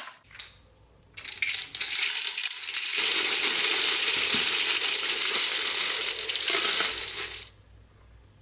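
Plastic pellets pour and rattle into a metal bowl.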